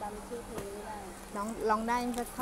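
A young woman talks close up.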